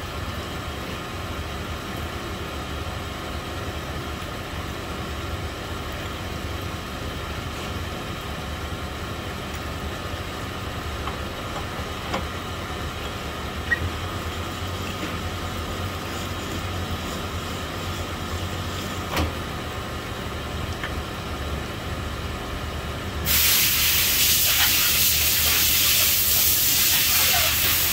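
A honing machine motor hums.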